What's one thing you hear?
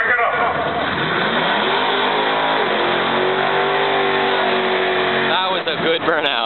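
A car engine roars loudly and revs up.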